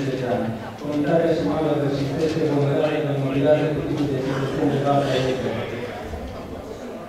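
An elderly man speaks calmly through a microphone and loudspeakers.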